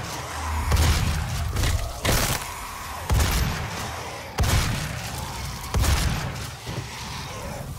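A heavy gun fires loud, booming shots again and again.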